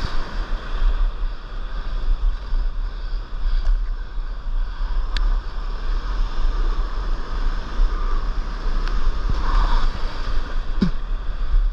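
Wind buffets loudly across a microphone outdoors.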